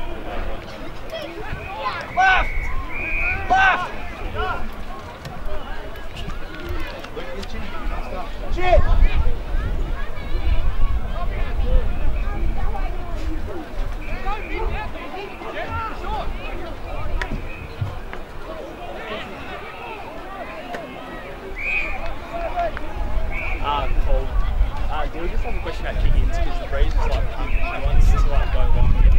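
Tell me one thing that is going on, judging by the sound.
Men shout and call out at a distance across an open field.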